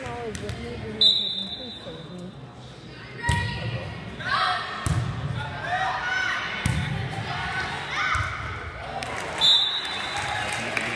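Sneakers squeak on the gym floor.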